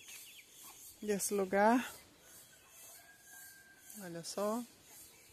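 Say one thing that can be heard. A chicken calls loudly nearby, twice.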